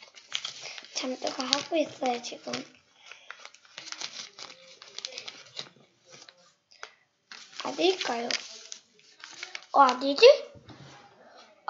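A young boy speaks quietly and close by.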